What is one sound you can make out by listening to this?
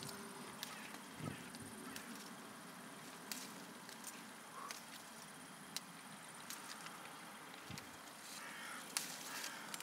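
Leaves rustle close by.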